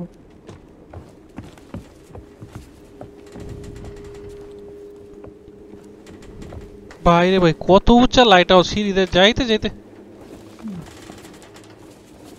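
Footsteps thud on wooden planks and stone steps.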